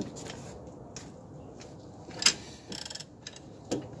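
A ratchet wrench clicks on a bolt.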